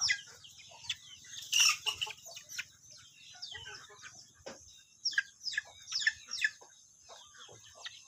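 Chickens scratch and peck at dry ground.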